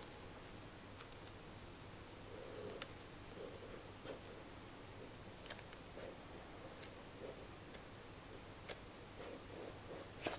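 Fingers tap and slide on a cardboard box.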